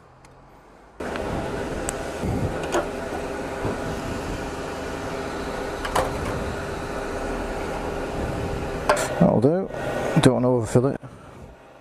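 Fuel gushes steadily from a pump nozzle into a tank.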